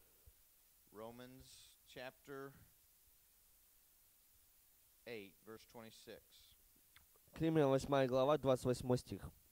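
A man speaks calmly into a microphone, in short bursts with long pauses.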